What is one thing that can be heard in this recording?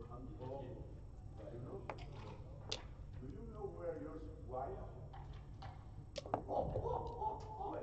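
Game pieces click against a wooden board.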